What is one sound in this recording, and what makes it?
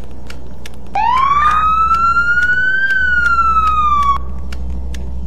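A police siren wails briefly, rising and falling.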